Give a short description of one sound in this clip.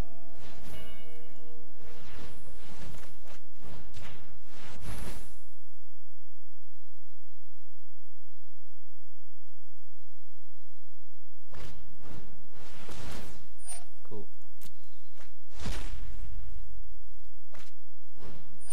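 Digital card game sound effects whoosh and chime.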